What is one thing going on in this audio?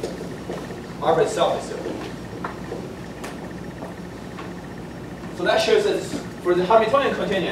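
A man lectures calmly in short bursts, heard at a distance in an echoing room.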